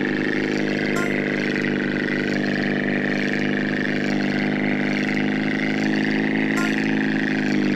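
A short chime rings out as the plane flies through a ring.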